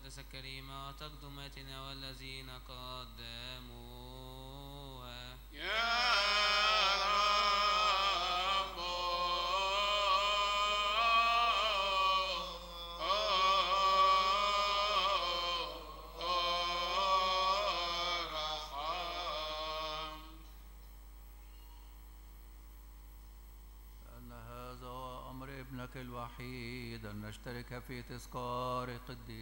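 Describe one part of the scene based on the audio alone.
A boy chants into a microphone in an echoing hall.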